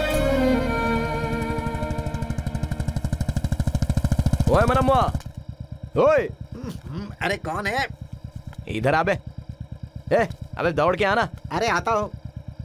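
A motorcycle engine putters at low speed.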